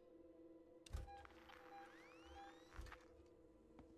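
An electronic tracking device beeps and chirps.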